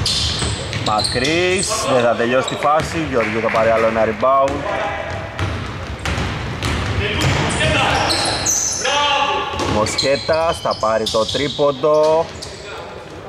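Men shout and call out to each other across the court.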